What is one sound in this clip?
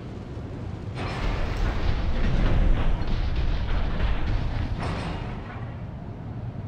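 A large robotic machine rumbles and hums as it moves.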